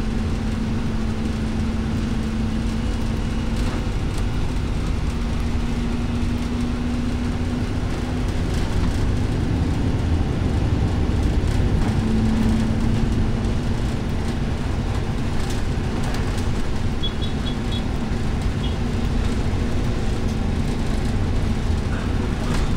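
Car traffic rushes past on a multi-lane road.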